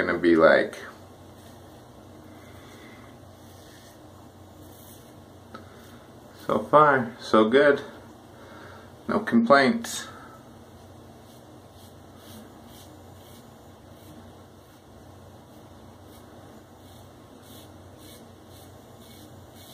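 A razor scrapes softly across a lathered scalp.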